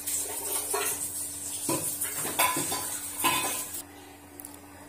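Steam hisses loudly from a pressure cooker's valve.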